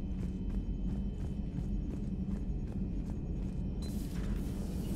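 Footsteps clank steadily on a metal floor.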